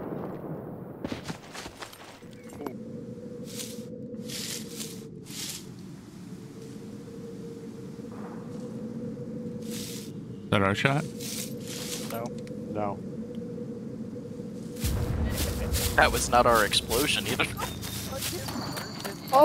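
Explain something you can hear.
Footsteps crunch over dry leaves and undergrowth.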